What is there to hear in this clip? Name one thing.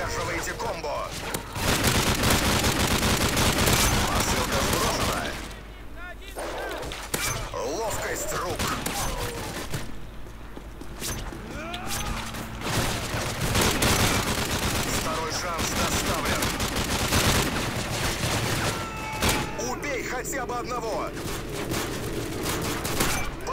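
Rapid gunfire bursts ring out.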